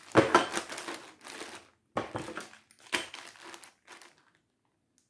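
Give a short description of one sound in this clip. Plastic wrapping crinkles and rustles under a hand.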